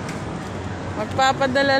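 A young child's high voice calls out close by.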